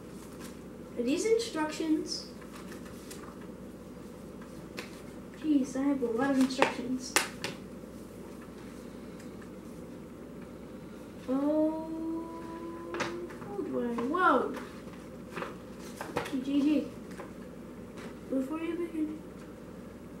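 A young boy talks nearby with animation.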